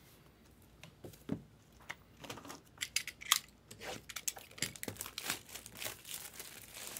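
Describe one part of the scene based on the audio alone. A blade slices and scrapes through plastic wrap.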